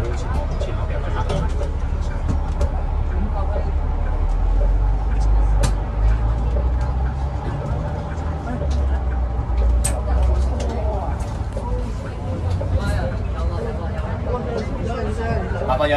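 A bus engine rumbles low and steady as the bus moves.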